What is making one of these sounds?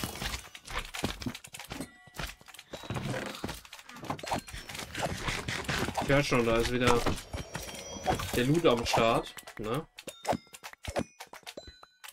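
Game blocks break with short crunching pops.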